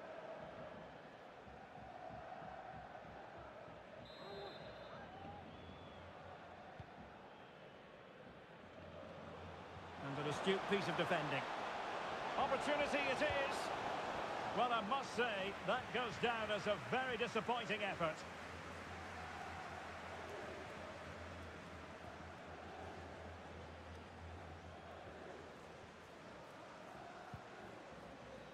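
A large stadium crowd murmurs and roars steadily in the distance.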